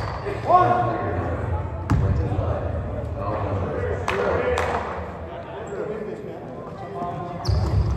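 Men talk nearby in an echoing hall.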